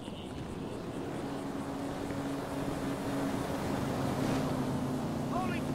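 A car engine hums as a car drives past on the road.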